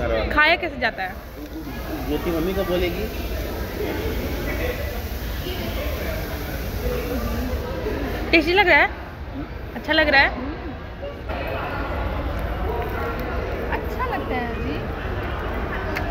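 A woman talks close by, expressively.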